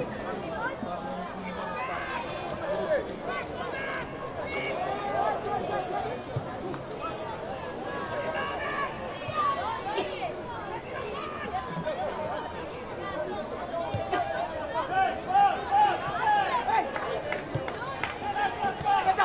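Players shout to each other across an open pitch.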